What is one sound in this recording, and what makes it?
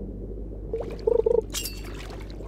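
A bright double chime rings as a fish bites.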